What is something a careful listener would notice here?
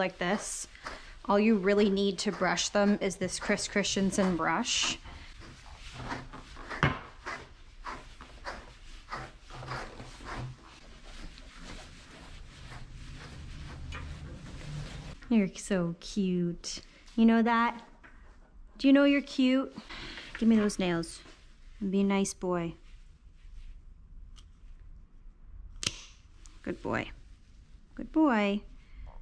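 A young woman talks calmly and warmly, close by.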